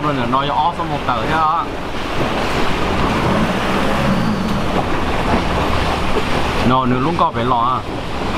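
A long-tail boat engine drones on a canal.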